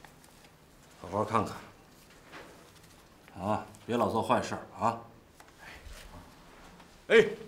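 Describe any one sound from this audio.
A middle-aged man speaks nearby in a teasing, scolding tone.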